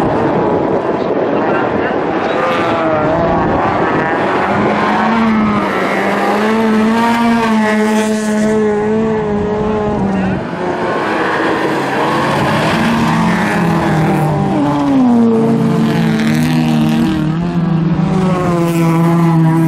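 Several rally car engines roar and rev loudly as the cars race past.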